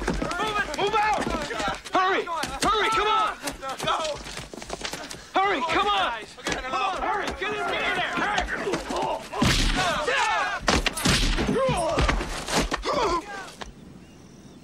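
A man shouts with alarm.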